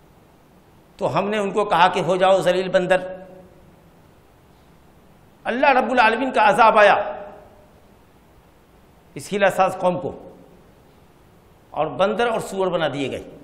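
A middle-aged man speaks calmly and clearly into a close microphone, pausing between phrases.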